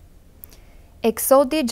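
A second young woman begins reading aloud calmly into a microphone.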